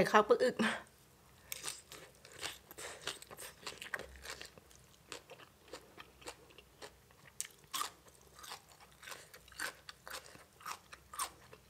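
A young woman chews and smacks food close to a microphone.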